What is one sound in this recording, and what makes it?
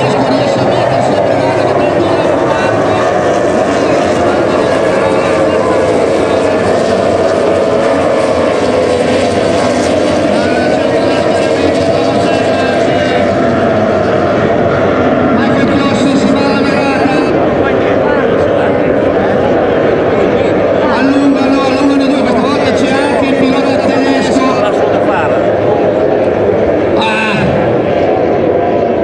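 Powerboat engines roar loudly as boats race across the water.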